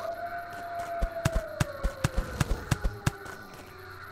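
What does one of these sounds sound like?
Quick light footsteps patter in a video game.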